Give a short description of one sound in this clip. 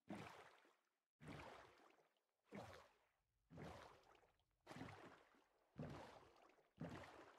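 Oars splash through water in a steady, repeating rhythm.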